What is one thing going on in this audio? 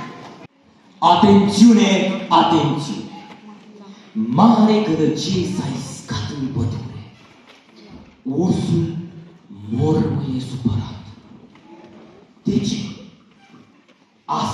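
A young man speaks with animation into a microphone over loudspeakers in a large hall.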